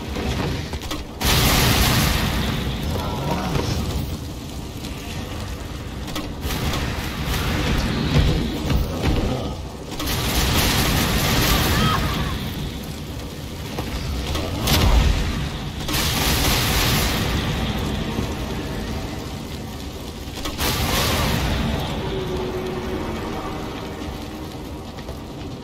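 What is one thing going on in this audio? Flames crackle and roar steadily.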